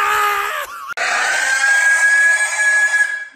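A pig squeals loudly and shrilly.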